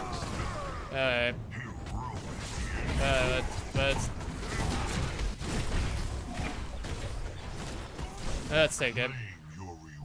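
Magic blasts and explosions crash during a frantic fight.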